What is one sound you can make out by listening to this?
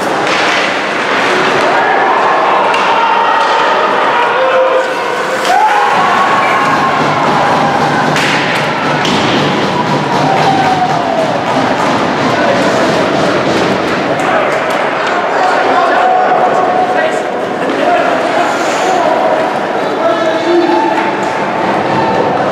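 A crowd cheers and shouts loudly in an echoing arena.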